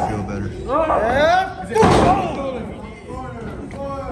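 A loud slap smacks against bare skin.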